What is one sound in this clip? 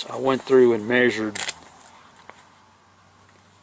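Paper pages rustle as a notepad is flipped open.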